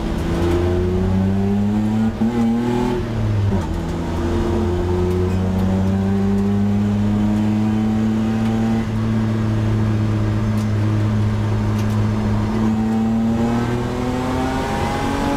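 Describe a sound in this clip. A race car engine roars loudly from inside the cabin, its pitch rising and falling as it revs.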